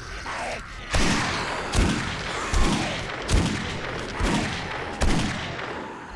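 A rifle fires rapid single shots.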